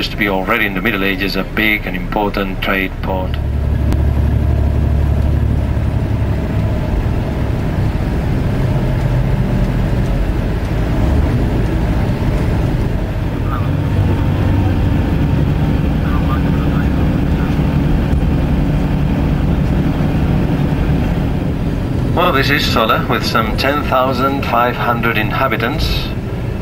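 A vehicle engine hums steadily with low road rumble.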